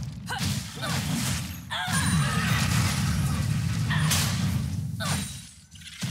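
Game combat effects whoosh and strike in quick bursts.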